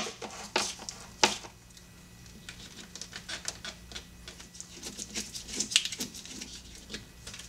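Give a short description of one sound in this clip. Gloved hands handle plastic hoses with soft rustles and clicks.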